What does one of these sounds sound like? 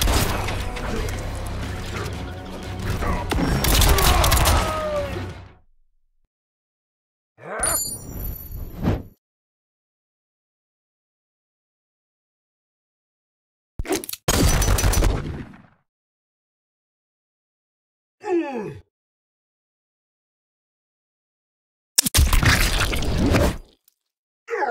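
Revolver gunshots crack in quick bursts.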